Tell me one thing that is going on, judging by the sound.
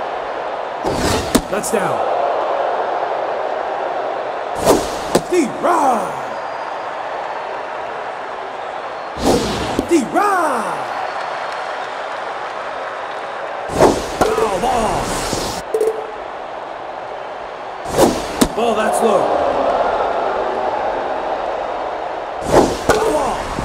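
A baseball smacks into a catcher's mitt again and again.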